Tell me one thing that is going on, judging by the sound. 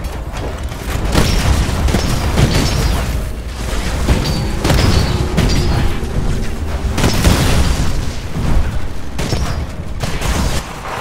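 Explosions rumble deeply.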